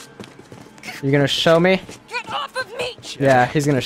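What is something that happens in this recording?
A man shouts angrily in a struggle.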